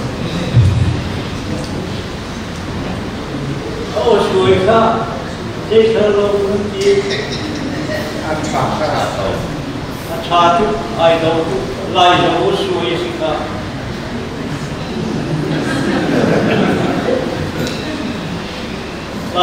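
An elderly man speaks steadily into a microphone over a loudspeaker, echoing in a large hall.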